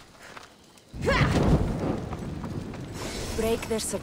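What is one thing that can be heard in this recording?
Flames burst up with a loud whoosh and crackle.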